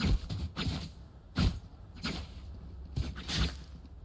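A blade swishes as a knife is drawn.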